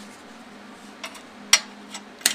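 A finger taps against a metal muffler.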